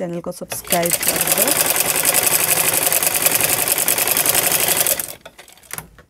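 A sewing machine runs fast with a rapid rattle.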